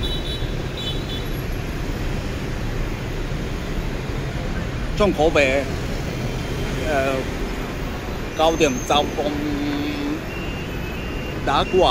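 Road traffic rumbles steadily nearby.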